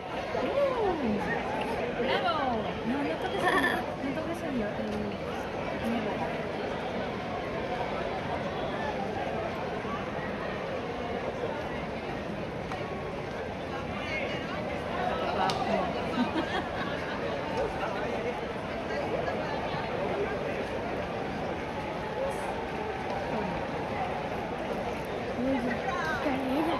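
A large crowd of runners pounds along a street outdoors.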